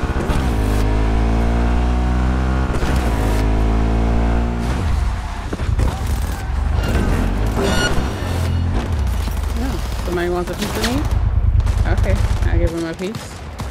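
A motorcycle engine roars and revs steadily.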